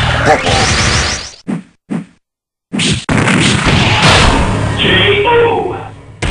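A fighting game's blows land with loud thumps and crashes.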